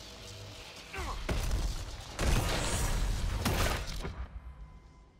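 A giant beast roars and stomps in a battle.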